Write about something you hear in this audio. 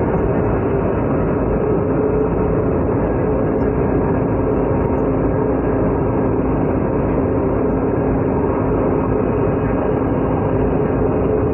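A train rumbles steadily along the track.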